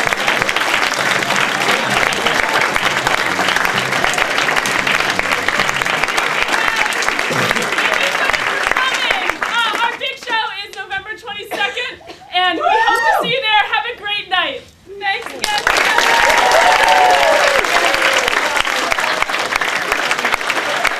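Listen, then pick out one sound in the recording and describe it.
A crowd claps and cheers loudly in a room.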